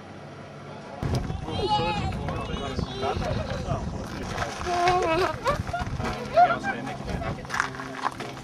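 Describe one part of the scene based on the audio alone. Several adult men and women talk casually nearby outdoors.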